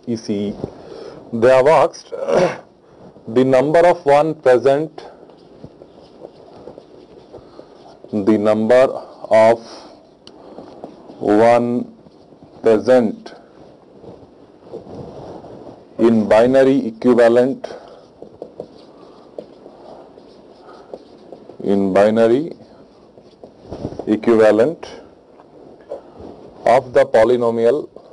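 A man speaks calmly in short phrases with long pauses.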